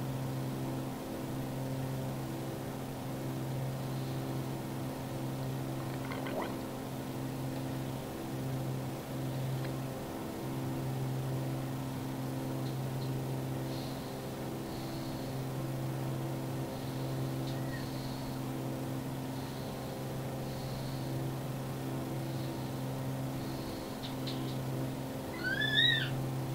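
A small propeller plane's engine drones steadily from inside the cabin.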